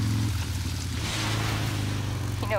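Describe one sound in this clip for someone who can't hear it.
Water splashes under a motorcycle's tyres.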